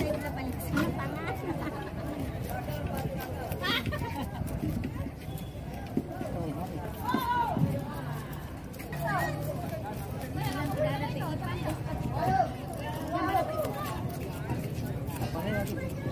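Several people talk nearby.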